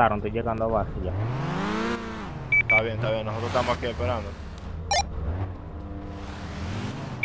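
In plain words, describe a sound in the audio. A car engine revs up and roars as it pulls away.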